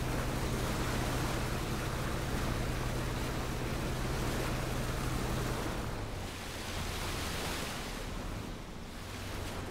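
A boat engine drones steadily, dropping in pitch partway through.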